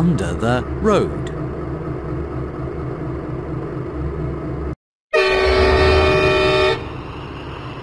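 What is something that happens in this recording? A diesel engine rumbles along a railway track.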